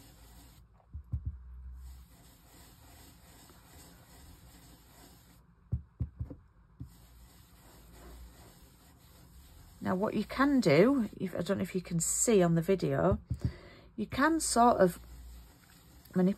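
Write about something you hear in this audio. A foam ink tool taps and dabs softly on paper.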